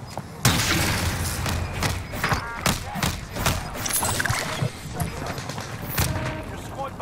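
Gunshots fire in sharp, rapid bursts.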